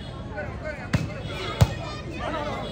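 A ball is struck with sharp thumps.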